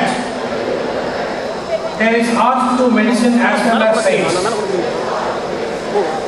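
A middle-aged man speaks steadily into a microphone over a loudspeaker, in a large echoing space.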